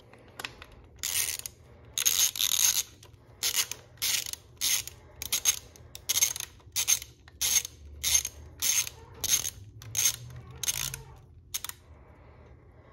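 A ratchet wrench clicks in short, rapid bursts.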